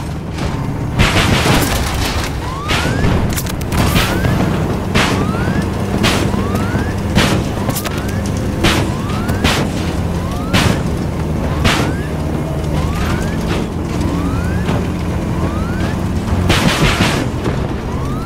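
Explosions blast nearby.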